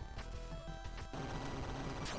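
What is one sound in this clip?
Retro electronic game music beeps in short stepped notes.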